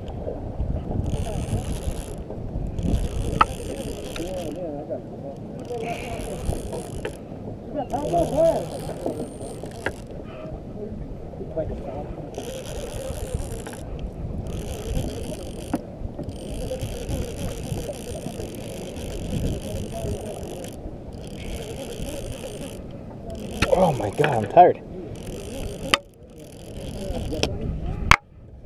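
A fishing reel whirs and clicks in bursts as it is wound.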